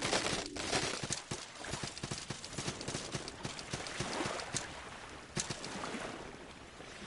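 Quick footsteps patter on wooden planks.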